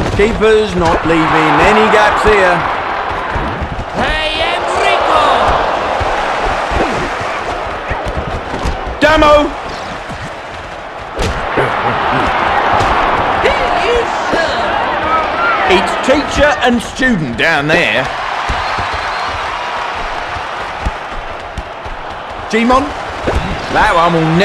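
A stadium crowd cheers and roars steadily.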